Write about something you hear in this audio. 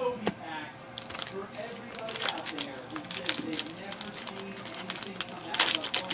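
Trading cards rustle and slap softly as hands flip through a stack.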